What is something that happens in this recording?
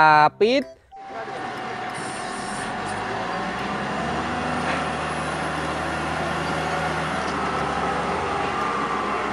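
A large loader engine roars steadily.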